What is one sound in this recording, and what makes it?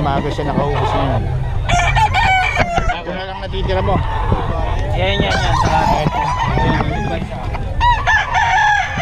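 Several men talk and call out loudly nearby, outdoors.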